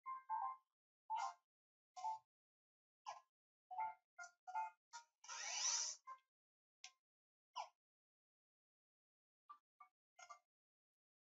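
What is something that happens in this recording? Short electronic blips sound as menu choices are made.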